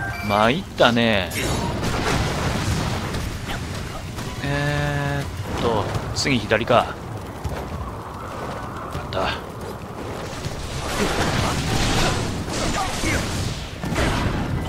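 Swords clash and slash in quick blows.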